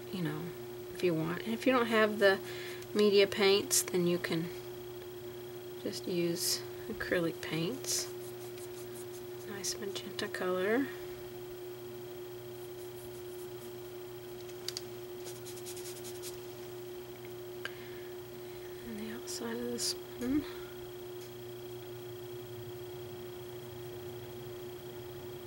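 A paintbrush strokes softly across paper.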